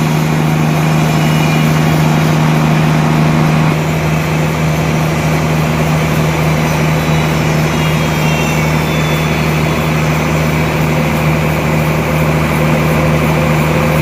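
A band saw whines as it cuts through a thick log.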